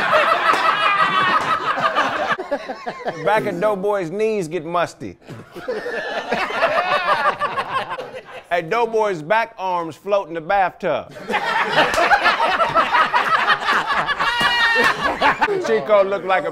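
A group of men laugh loudly together.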